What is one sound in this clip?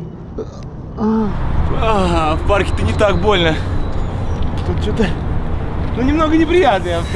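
Young men shout and laugh excitedly nearby.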